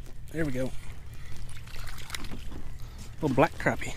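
A fish splashes in the water close by.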